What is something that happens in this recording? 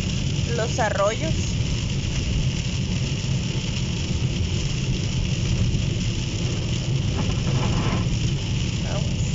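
Windscreen wipers thump back and forth across the glass.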